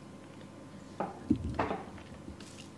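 A boy gulps down a drink.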